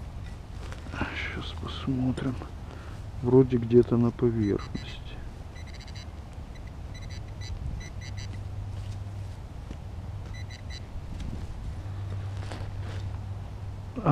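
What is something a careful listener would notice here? Fingers rustle through dry grass and pine needles.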